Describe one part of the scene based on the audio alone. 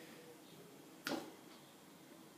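A metal saucepan clanks against a baking tin.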